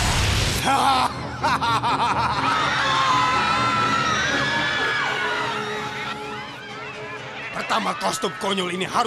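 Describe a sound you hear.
A man cackles menacingly in a deep, booming voice.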